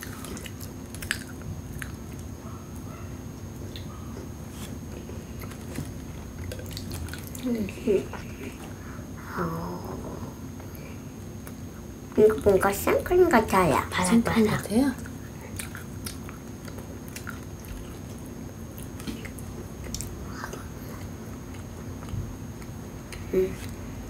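A girl sips a drink through a straw.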